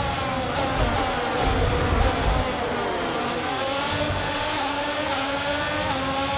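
A racing car engine whines loudly at high revs, shifting pitch as it speeds up and slows down.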